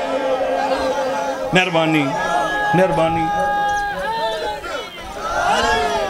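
A man recites in a loud, chanting voice through a microphone.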